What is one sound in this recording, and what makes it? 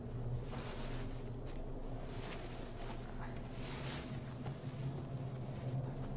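Footsteps rustle through leaves as a person runs off.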